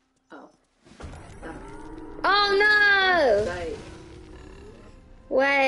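A second young woman exclaims loudly into a microphone.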